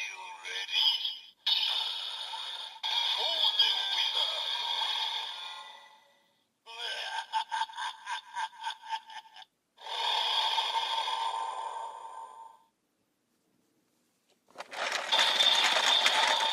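A toy plays loud electronic sound effects and music through a small speaker.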